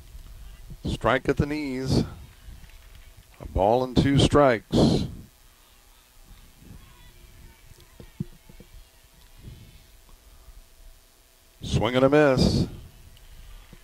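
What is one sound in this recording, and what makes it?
A man calls out a pitch loudly.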